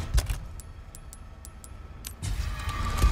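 Menu clicks tick quickly in a series.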